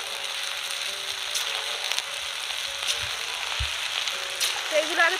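Batter sizzles and crackles steadily in hot oil.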